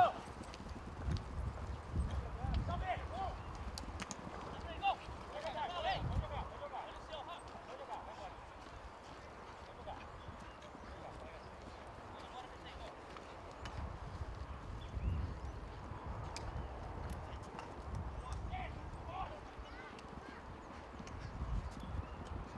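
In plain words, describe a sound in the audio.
Horses gallop across soft turf with dull thudding hoofbeats.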